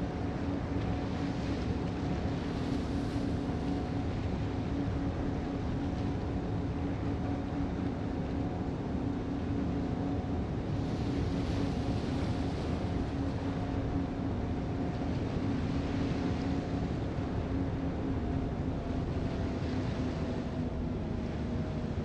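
A ship's engine hums with a low steady drone.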